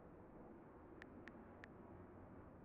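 Touchscreen keyboard keys click softly.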